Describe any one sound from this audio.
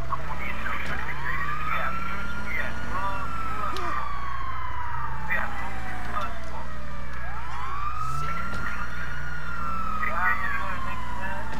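A police siren wails, rising and falling slowly.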